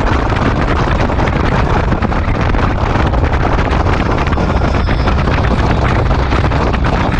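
A motorcycle engine drones steadily.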